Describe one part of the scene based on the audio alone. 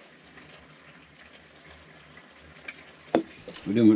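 Beer pours from a can into a glass and fizzes.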